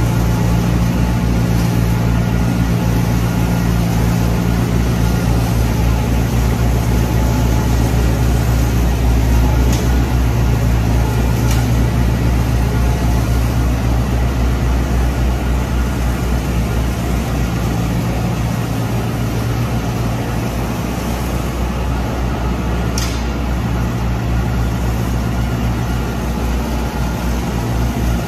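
A straw blower roars, blasting straw across the pens.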